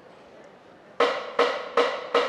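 A brass band blasts loud short chords.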